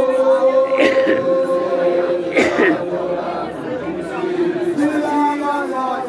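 A crowd of women sings together outdoors.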